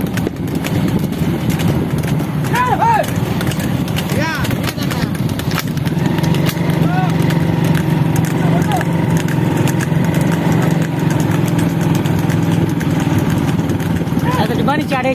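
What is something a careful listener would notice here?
Wooden cart wheels rattle and clatter on a paved road.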